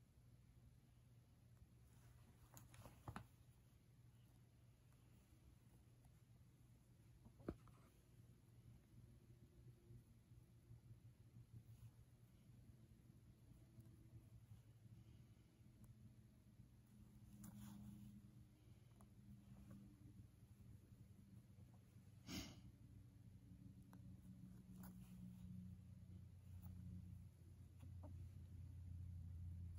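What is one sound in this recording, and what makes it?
Thread rustles faintly as a needle draws it through cloth.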